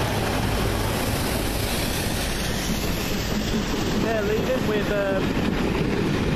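Railway carriages rumble and clatter along the track.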